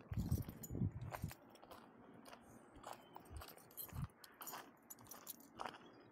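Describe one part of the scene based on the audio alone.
Footsteps crunch on gravel close by.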